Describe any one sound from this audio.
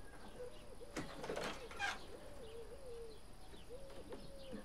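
A door handle clicks as a door is opened.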